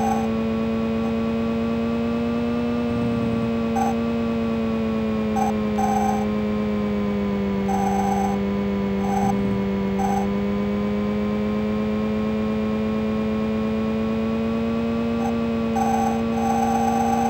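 A retro game car engine drones steadily, its pitch dipping and rising with speed.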